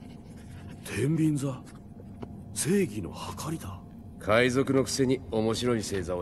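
A second man answers calmly.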